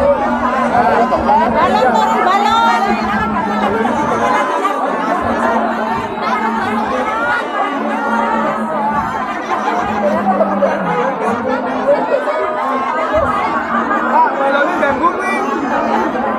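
A crowd of men and women chatter loudly close by.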